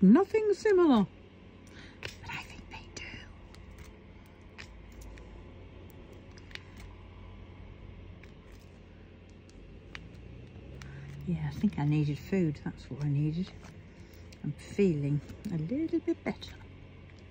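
Tiny plastic beads click softly as they are picked up and pressed into place.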